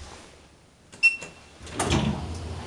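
An elevator chime rings once.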